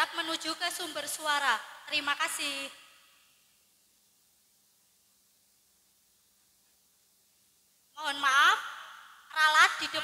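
Young children sing and shout loudly.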